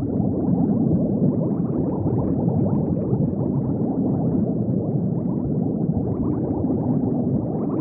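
Bubbles gurgle and burble steadily underwater.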